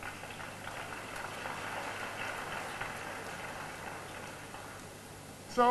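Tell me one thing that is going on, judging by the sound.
A large crowd murmurs softly in a big echoing hall.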